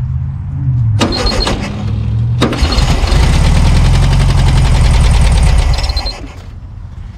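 An old car engine cranks loudly, then stops.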